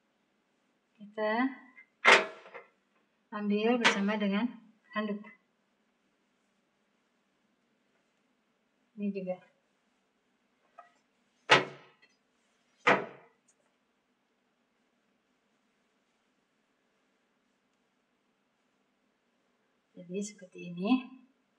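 A woman speaks calmly and close by, in short phrases.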